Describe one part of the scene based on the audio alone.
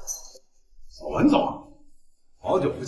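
A man greets someone warmly.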